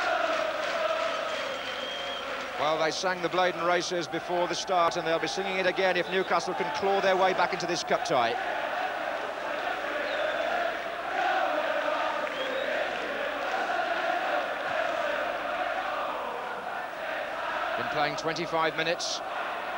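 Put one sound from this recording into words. A large crowd chants and cheers loudly in an open stadium.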